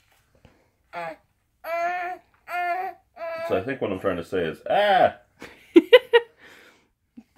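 A man talks to a baby close by, in a playful sing-song voice.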